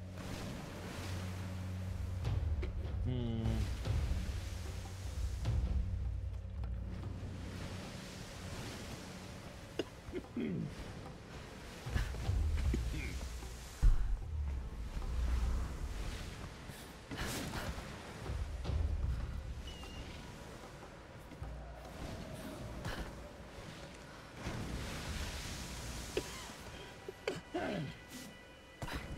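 Wind roars in low gusts.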